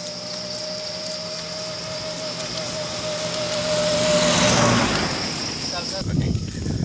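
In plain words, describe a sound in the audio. A car drives up and passes close by.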